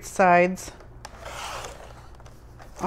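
A paper trimmer blade slides and slices through paper.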